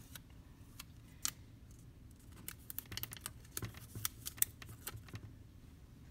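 A small paper tag rustles and taps as a hand presses it into place.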